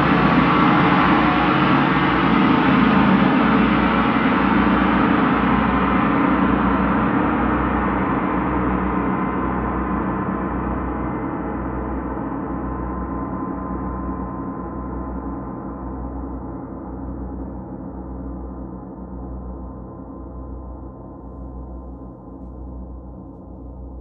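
Large gongs ring with a deep shimmering hum that slowly fades.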